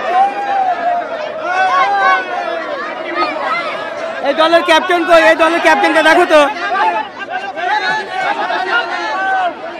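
A crowd of young men talks and shouts all at once, close by.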